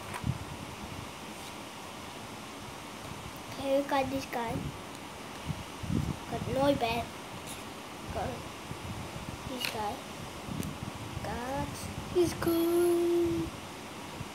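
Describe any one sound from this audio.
Trading cards rustle and slide in a boy's hands.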